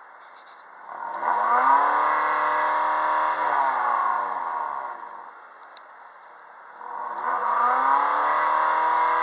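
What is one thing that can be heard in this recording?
A four-cylinder petrol car engine revs up and falls back, roaring from the exhaust.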